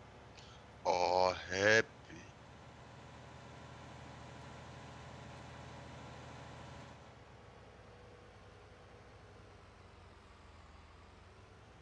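A heavy tractor engine rumbles steadily as it drives.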